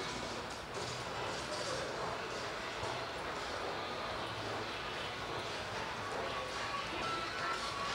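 Two people walk past on a hard floor with faint echoing footsteps.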